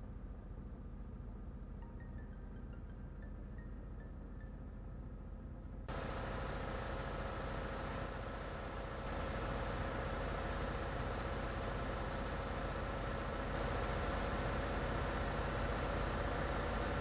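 Tyres roll on a road surface.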